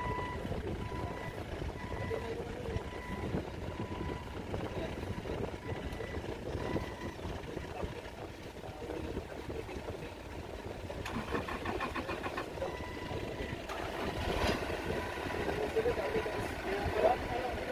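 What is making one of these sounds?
A forklift engine runs and rumbles nearby.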